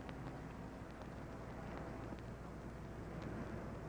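A car door shuts.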